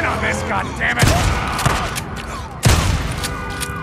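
A pistol fires loud, echoing shots.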